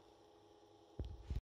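A hand bumps and rubs against the microphone.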